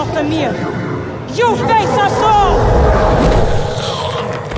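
A woman speaks in a low, menacing voice.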